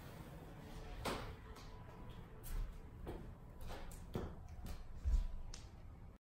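Bare feet thud softly on a tiled floor.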